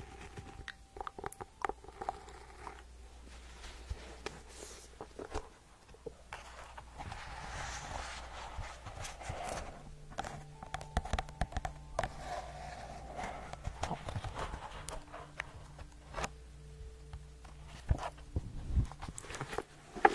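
Fingernails tap on a book cover close to a microphone.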